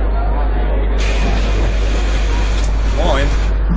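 Bus doors hiss open with a burst of air.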